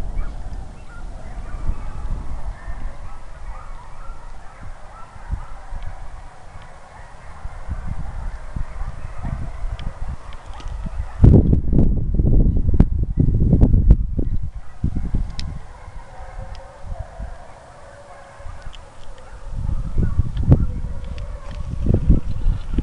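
Dry grass rustles in the wind.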